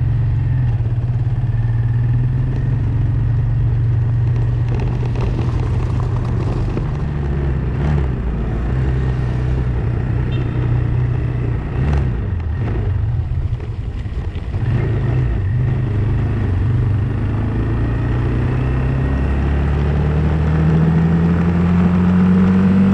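Tyres roll over a wet, rough road.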